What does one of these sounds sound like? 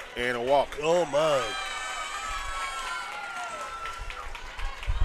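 A crowd cheers loudly outdoors, then quiets down.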